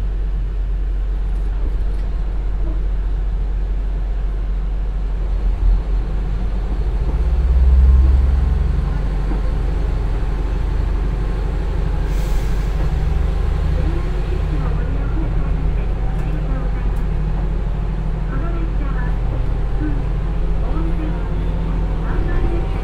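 A diesel train's engine rumbles low and steadily.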